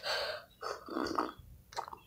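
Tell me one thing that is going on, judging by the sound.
A boy gulps a drink.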